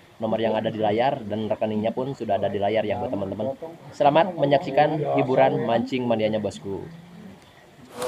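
A young man talks casually and close up.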